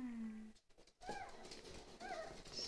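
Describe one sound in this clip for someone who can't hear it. Puppies whimper and yelp in high voices.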